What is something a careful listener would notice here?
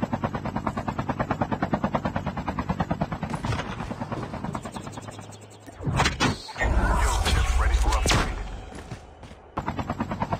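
A helicopter's rotor chops rapidly and steadily.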